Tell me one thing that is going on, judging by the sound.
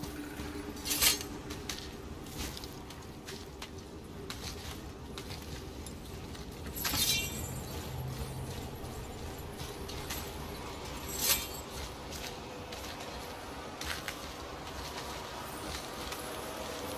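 Hands grip and scrape against rock during a climb.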